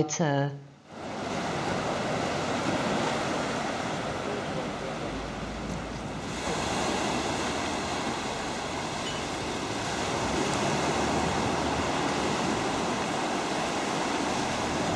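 Waves break and wash onto a shore in the wind.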